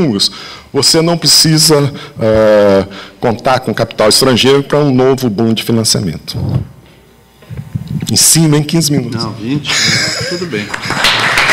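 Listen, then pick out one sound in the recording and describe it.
A man speaks into a microphone with animation, his voice echoing in a large hall.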